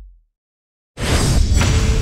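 A loud watery splash bursts out.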